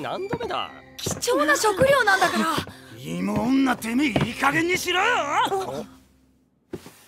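A young woman talks loudly and excitedly.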